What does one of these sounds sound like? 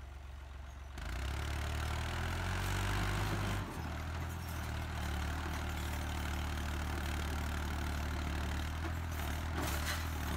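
A tractor engine revs up loudly and labours as it climbs.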